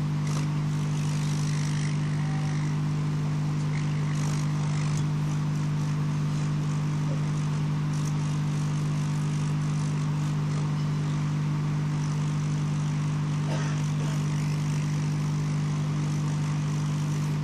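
A hot air rework gun blows with a steady fan hum.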